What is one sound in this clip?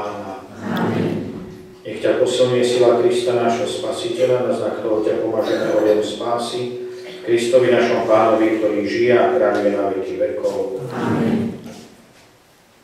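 A man sings or chants through a microphone in an echoing hall.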